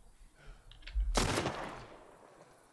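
A knife stabs with a wet, heavy thud.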